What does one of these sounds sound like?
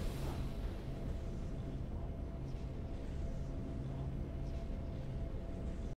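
Triumphant game music plays with a low, steady drone.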